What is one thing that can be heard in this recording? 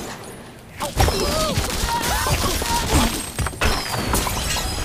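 Wooden blocks and glass crash and tumble down.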